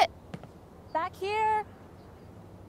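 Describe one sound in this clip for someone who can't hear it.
A young woman answers from close by.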